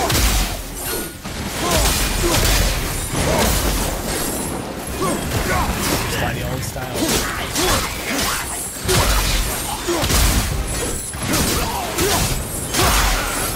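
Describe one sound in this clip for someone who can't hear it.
Heavy blows and impacts thud and crash in a fight.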